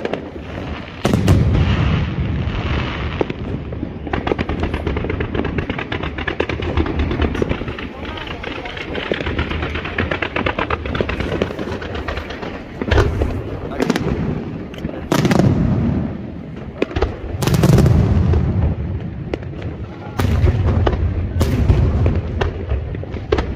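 Fireworks boom and thud loudly, one after another.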